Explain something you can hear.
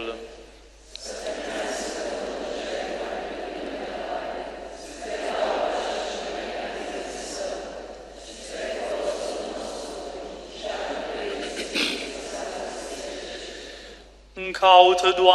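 A crowd of people recite together in a low murmur.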